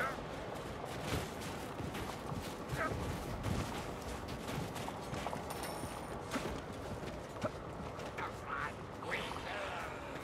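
Blades slash and thud against enemies in quick blows.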